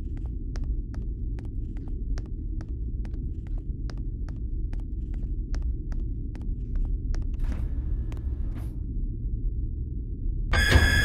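Footsteps tap quickly and steadily.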